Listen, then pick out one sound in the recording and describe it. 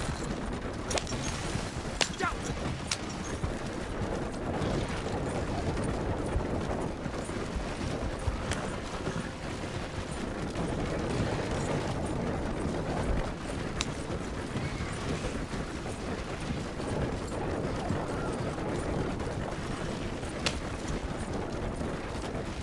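A horse-drawn wagon rattles along rough ground.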